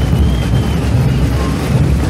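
Marching drums beat loudly nearby.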